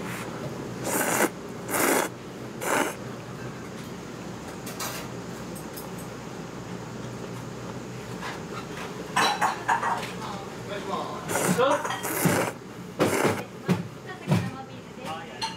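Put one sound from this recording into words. A young woman slurps noodles loudly, close by.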